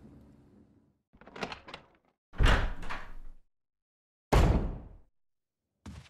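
A heavy wooden door creaks open and bangs shut.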